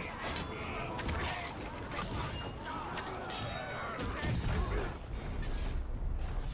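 Deep thuds of heavy blows boom.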